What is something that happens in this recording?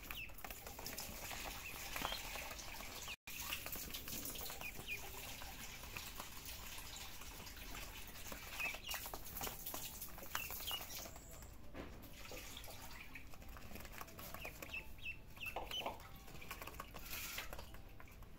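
A kitten's paws pat and scuff on a soft plastic mat.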